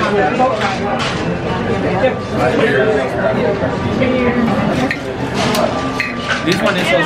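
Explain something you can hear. Glass bottles clink on a counter.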